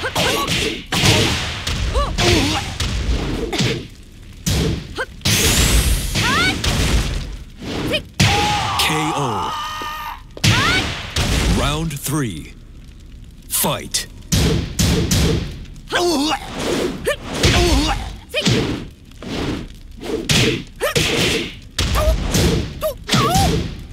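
Fiery energy blasts whoosh and crackle.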